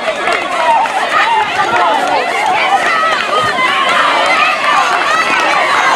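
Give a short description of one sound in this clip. A crowd of young girls cheers and shouts excitedly outdoors.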